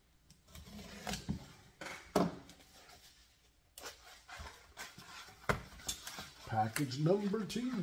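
Cardboard rustles and scrapes as a package is opened.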